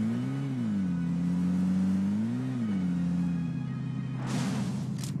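A vehicle engine hums and revs up and down.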